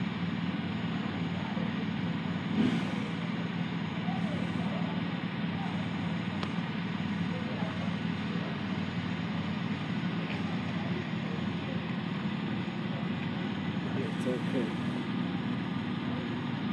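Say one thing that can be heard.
A motorcycle engine idles close by with a low, steady rumble.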